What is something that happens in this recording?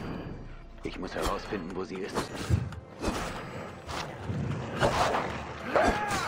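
Hyenas snarl and growl.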